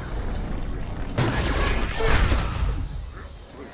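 An energy beam fires with a buzzing whoosh.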